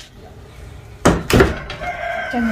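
A wooden door bangs shut.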